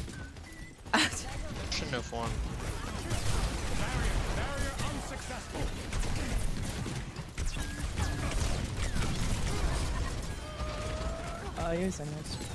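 Rapid gunfire and energy blasts crackle.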